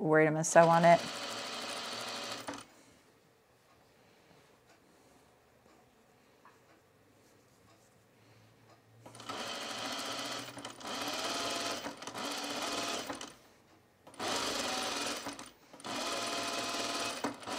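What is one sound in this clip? A sewing machine hums and stitches in short bursts.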